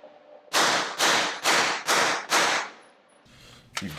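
A suppressed rifle fires a quick series of muffled shots that echo.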